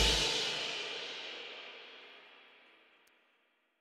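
A band's last chord rings out and fades away.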